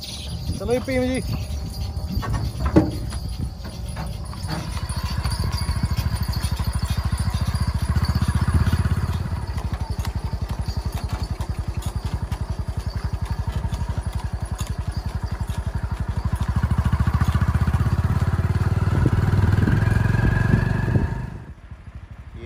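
A horse's hooves clop steadily on a paved road.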